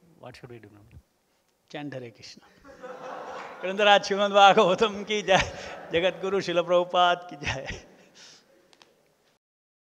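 An elderly man speaks warmly through a microphone.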